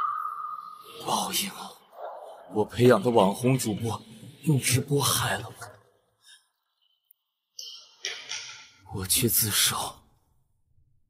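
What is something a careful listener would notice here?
A young man speaks tensely and bitterly, close by.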